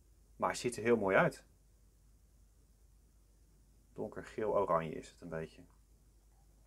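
A man speaks calmly and close by, in two short bursts.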